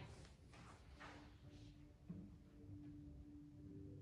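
A cello plays a sustained, slow melody.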